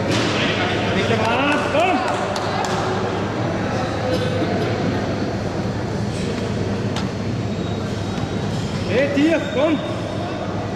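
Men shout loud encouragement to a lifter.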